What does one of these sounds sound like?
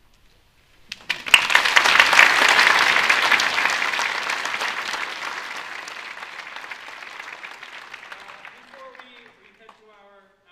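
An audience applauds loudly, then the clapping fades.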